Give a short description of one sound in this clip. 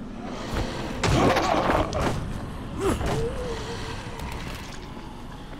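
A wooden club swishes through the air and strikes with a heavy thud.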